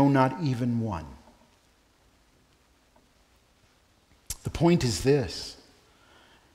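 A man speaks slowly and calmly through a microphone, pausing between phrases.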